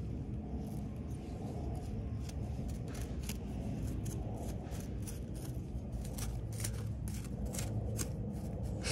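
A small tool scratches and pokes at dry soil, close by.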